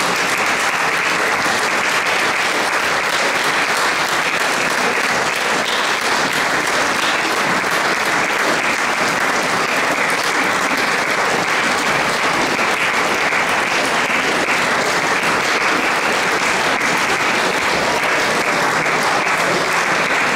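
A women's choir sings together.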